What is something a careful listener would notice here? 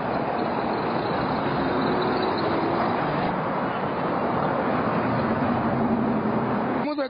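Cars and trucks drive past on a busy road outdoors.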